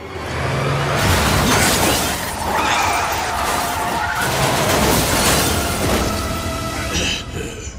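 A car crashes into a van with a loud crunch of metal.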